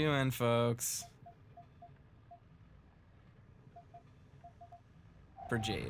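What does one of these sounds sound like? Soft electronic beeps tick as a menu cursor moves between options.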